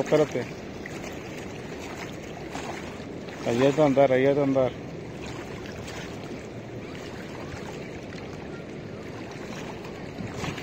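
Small waves lap gently against a stone edge.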